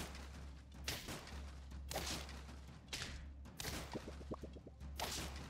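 Cartoon game sound effects whoosh and clash in short bursts.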